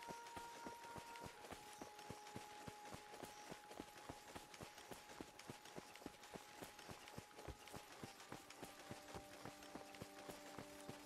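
Footsteps thud quickly and steadily on soft sand.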